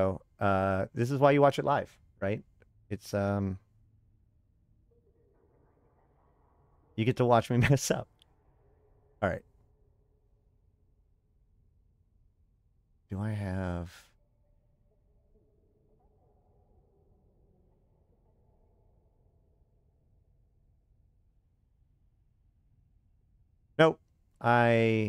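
A man speaks casually into a close microphone, in short bursts with pauses.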